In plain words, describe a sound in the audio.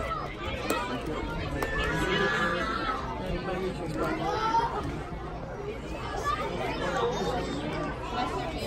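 Men nearby talk and call out to the players.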